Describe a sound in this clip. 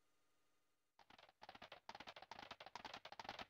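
Rapid soft electronic blips tick quickly.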